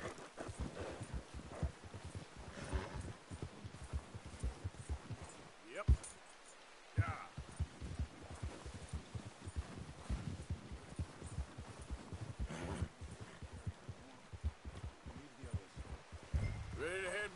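Horse hooves thud and crunch through deep snow at a steady gallop.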